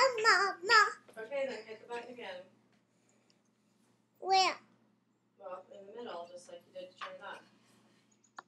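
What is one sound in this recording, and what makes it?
A young girl talks close by in a high voice.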